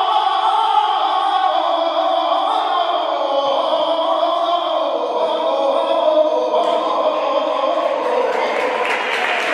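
A crowd sings together in a large echoing hall.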